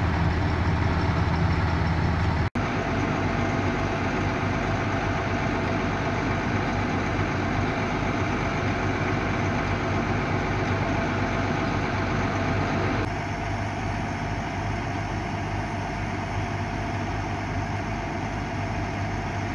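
A fire truck's diesel engine idles with a steady, low rumble.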